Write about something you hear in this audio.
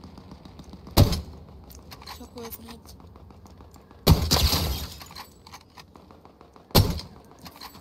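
A rifle fires loud single shots, with a sharp crack.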